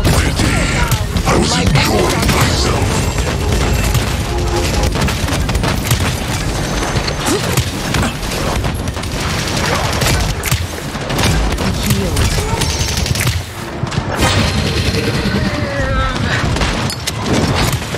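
Gunfire and blasts of a fight ring out in quick bursts.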